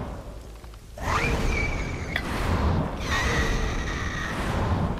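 A soft magical chime shimmers.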